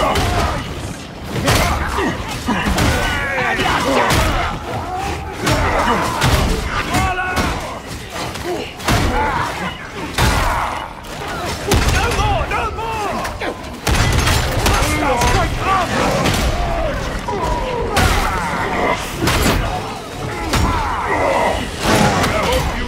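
Heavy gunfire blasts in rapid bursts.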